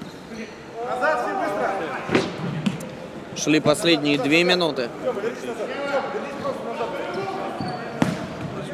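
Men shout to each other across an echoing hall.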